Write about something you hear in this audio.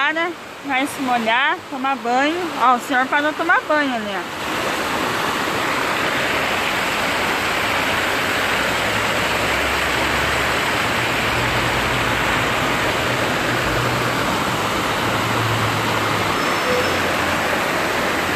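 Water gushes and splashes steadily.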